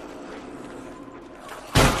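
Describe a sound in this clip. A gunshot cracks.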